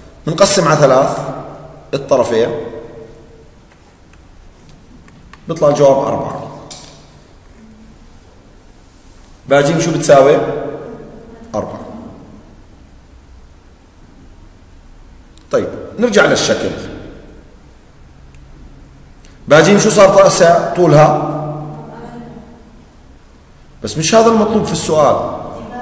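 A man explains calmly into a close microphone, in short bursts with pauses.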